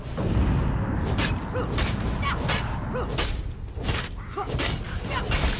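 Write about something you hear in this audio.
Weapons clash and strike in quick blows.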